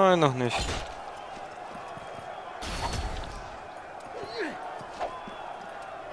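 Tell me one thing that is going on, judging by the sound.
Swords clash and clang.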